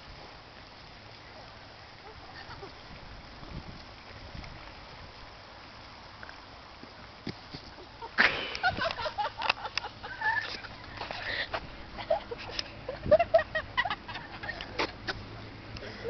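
Dry leaves rustle and crunch underfoot during a scuffle.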